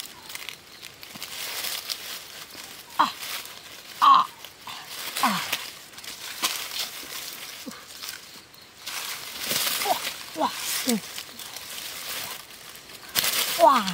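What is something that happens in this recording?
Dry leaves rustle and crunch as someone digs through them by hand.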